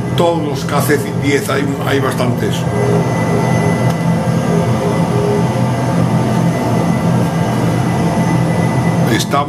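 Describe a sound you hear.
A jet engine drones steadily through a loudspeaker.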